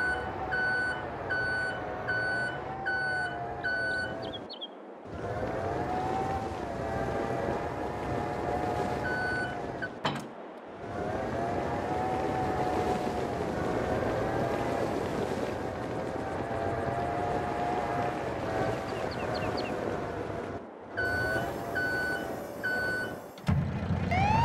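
A truck engine hums and revs.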